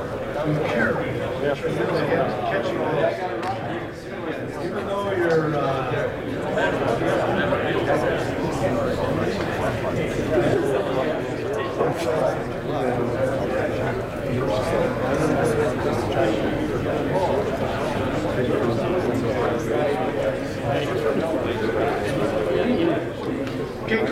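A man speaks to an audience through a microphone in a large, echoing hall.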